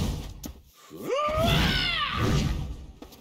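A pole whooshes through the air as it is swung.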